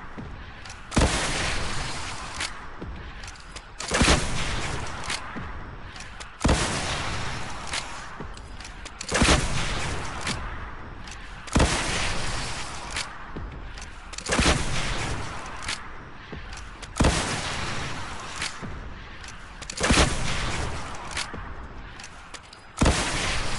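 Explosions boom and rumble after each shot.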